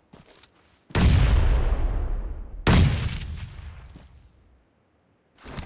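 Gunshots boom loudly and echo away.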